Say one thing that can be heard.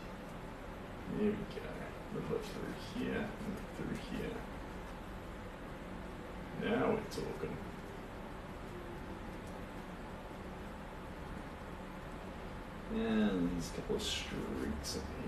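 A paintbrush dabs and strokes softly on canvas.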